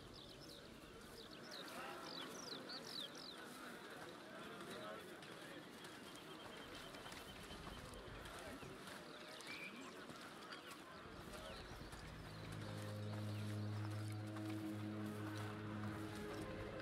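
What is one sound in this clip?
A crowd of men and women chatters and murmurs nearby.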